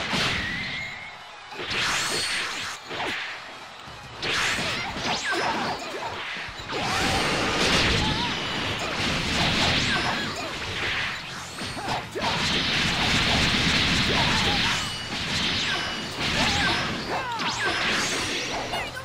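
Energy blasts whoosh and explode in a fast fight.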